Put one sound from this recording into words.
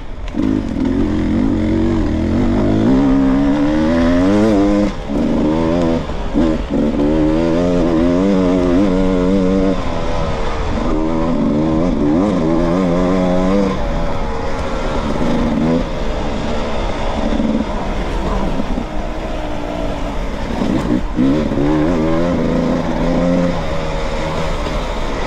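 A dirt bike engine revs up and down loudly, close by.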